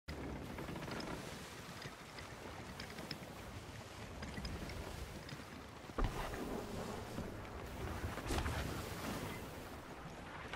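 Waves churn and splash against a ship's hull.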